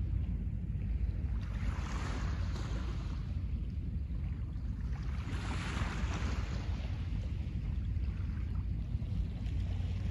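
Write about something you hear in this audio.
Small waves wash gently onto a pebble shore, swelling and fading.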